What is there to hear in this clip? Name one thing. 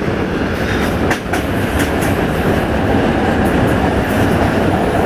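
A train rumbles steadily along the tracks, with wheels clattering on the rails.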